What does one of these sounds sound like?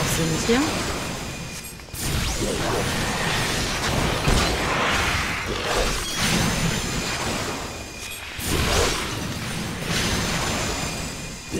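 A sword slashes with sharp swishing hits.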